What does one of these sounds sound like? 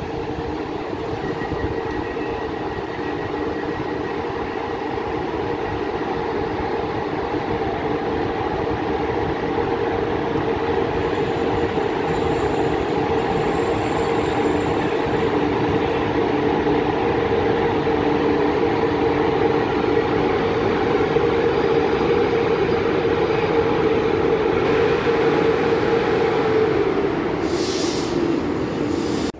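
A locomotive engine hums steadily and grows louder as a train slowly approaches.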